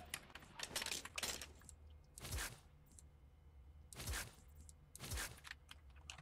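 Menu clicks sound in quick single taps.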